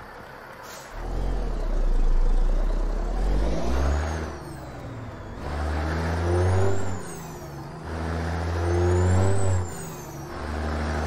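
A truck engine revs up and drops again several times as gears change.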